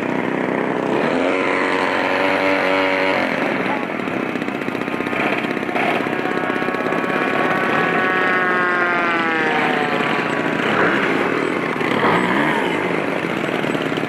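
A model airplane engine whines and revs up and down.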